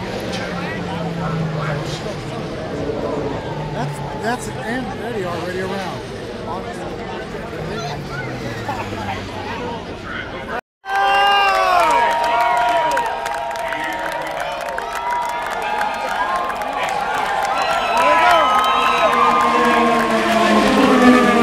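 A large crowd of spectators cheers outdoors.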